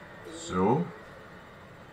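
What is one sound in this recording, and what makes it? A young man makes a short vocal exclamation close to a microphone.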